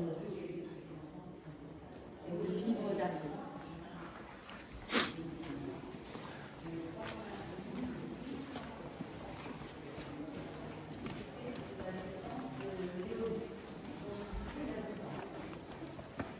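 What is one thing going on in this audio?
Several people talk quietly nearby.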